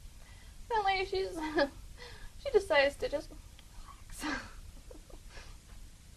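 A woman talks cheerfully, close to a microphone.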